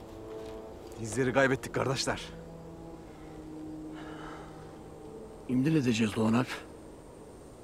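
A man speaks firmly and loudly up close.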